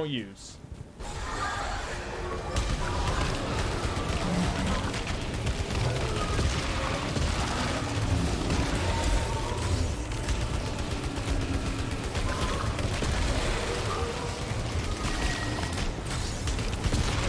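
Rapid gunfire and blasts rattle loudly.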